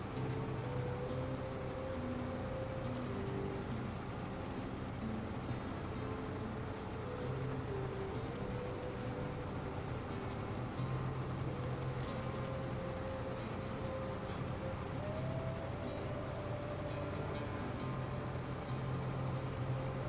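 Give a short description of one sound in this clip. A heavy truck engine rumbles and strains as it climbs over rocks.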